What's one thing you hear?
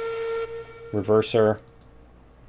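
A steam whistle gives two short toots.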